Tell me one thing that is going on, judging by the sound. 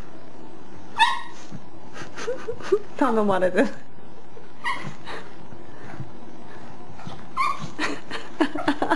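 A small dog barks sharply several times.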